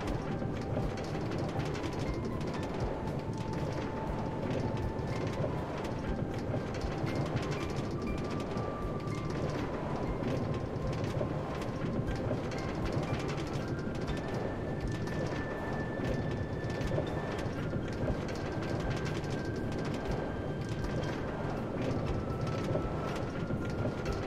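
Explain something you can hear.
A minecart rattles steadily along metal rails.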